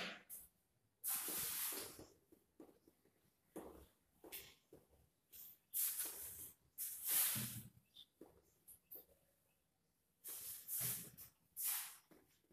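A cloth eraser rubs across a whiteboard in quick swishing strokes.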